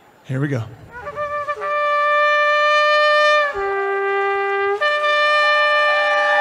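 A man blows a ram's horn loudly, with long notes that shift in pitch.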